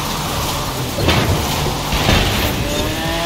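Metal barriers crash and clatter as a car smashes through them.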